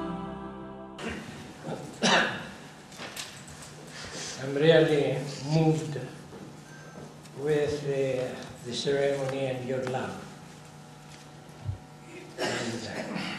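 An elderly man speaks slowly into a microphone in an echoing hall.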